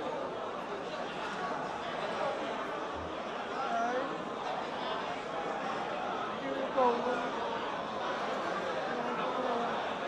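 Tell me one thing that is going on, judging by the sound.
A large crowd of spectators chatters outdoors.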